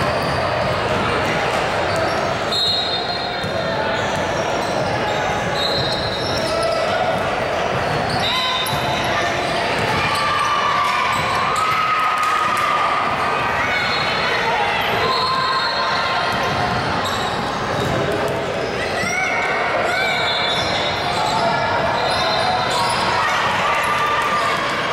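Girls shout to each other across the court.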